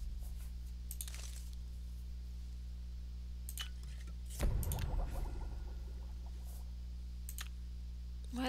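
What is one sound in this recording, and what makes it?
Soft menu clicks sound as items are picked.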